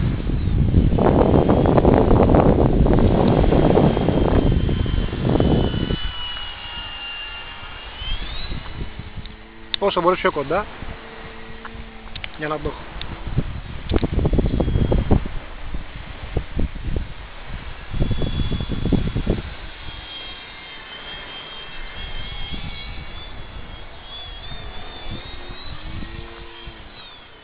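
A small model airplane engine whines overhead, its pitch rising and falling as it passes.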